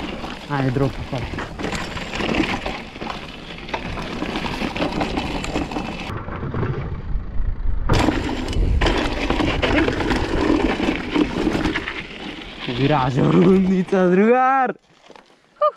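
Bicycle tyres crunch and rattle over a rough gravel trail.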